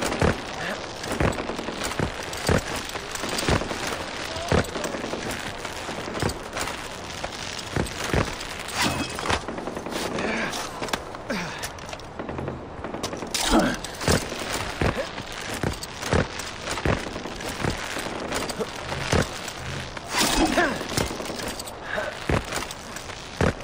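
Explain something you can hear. A rope creaks and rattles as it is pulled taut.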